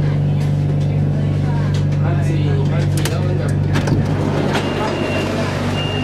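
Train doors slide open and shut.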